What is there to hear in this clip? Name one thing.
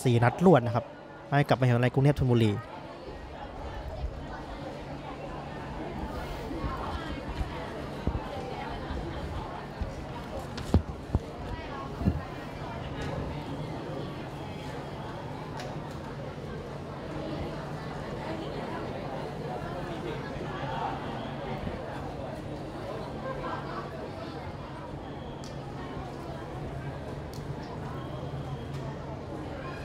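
A crowd murmurs and chatters in a large open stadium.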